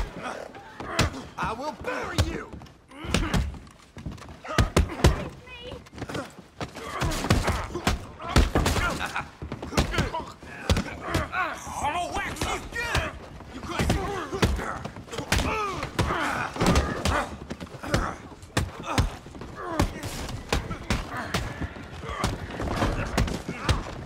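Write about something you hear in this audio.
Fists thud against bodies in a brawl.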